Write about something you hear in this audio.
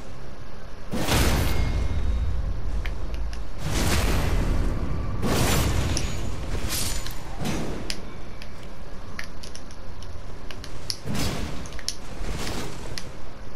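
A sword whooshes and strikes in swings.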